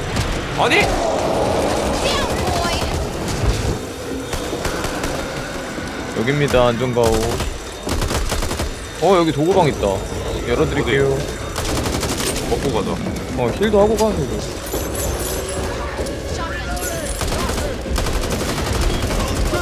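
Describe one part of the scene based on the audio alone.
Bursts of rifle gunfire rattle.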